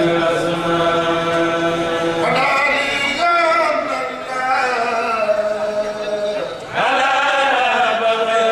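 Several men chant together in unison through a microphone, loud and steady.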